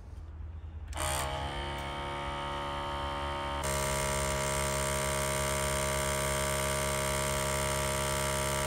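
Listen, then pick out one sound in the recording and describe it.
An electric sprayer pump hums steadily.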